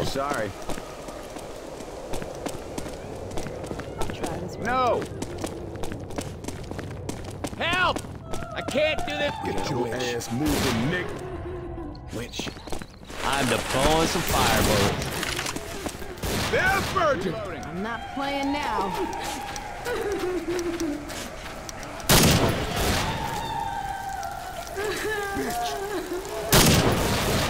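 A rifle fires single loud shots now and then.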